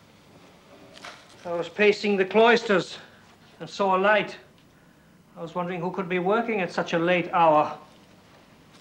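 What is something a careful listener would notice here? A second man speaks calmly.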